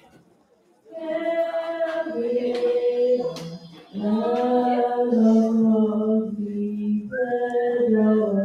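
A large crowd of young people sings together outdoors, holding long notes.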